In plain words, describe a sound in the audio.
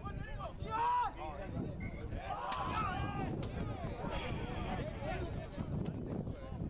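Spectators on the sideline cheer and call out.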